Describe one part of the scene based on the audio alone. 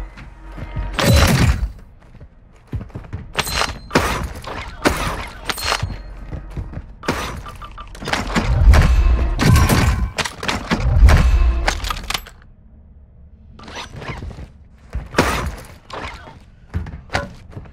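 A gun rattles as it is handled and swapped.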